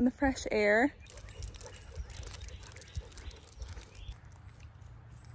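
Footsteps patter on a paved path.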